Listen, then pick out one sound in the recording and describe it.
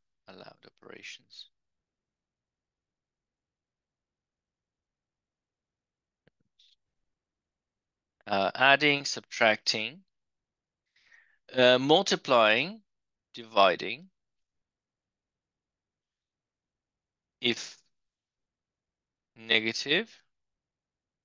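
A man speaks calmly into a close microphone, explaining in short phrases with pauses.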